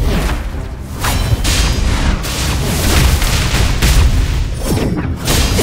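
Glowing energy blasts streak and whoosh through the air.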